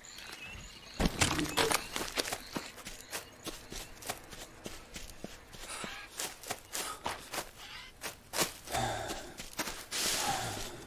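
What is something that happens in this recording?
Footsteps crunch through dry undergrowth.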